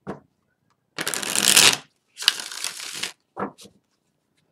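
Playing cards are shuffled with a quick riffling rustle.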